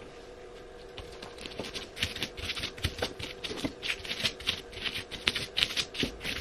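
A stone pestle pounds and grinds against a stone mortar with crunching and knocking.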